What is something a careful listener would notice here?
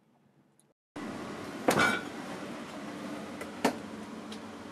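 A refrigerator hums steadily.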